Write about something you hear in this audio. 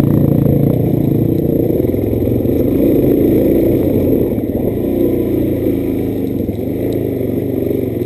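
A dirt bike engine buzzes loudly and steadily up close, revving up and down.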